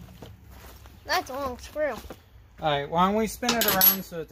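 A young boy speaks close by.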